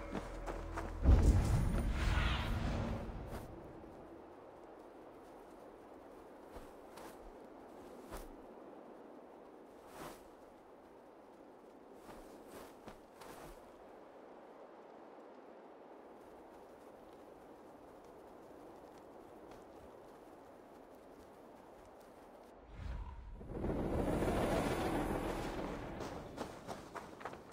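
Wind rushes loudly past a flying bird, then fades.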